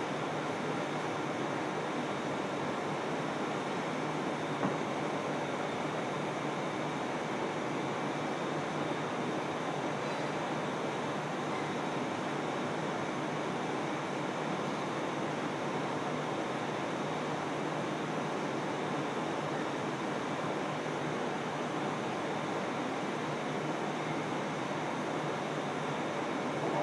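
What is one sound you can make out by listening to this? An electric train runs along the tracks with a steady rumble and a high motor whine.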